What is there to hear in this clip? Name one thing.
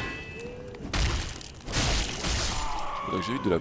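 Swords clash and slash in a game fight.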